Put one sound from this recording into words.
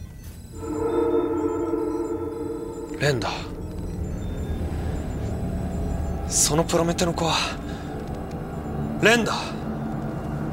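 A young man speaks in a low, tense voice close by.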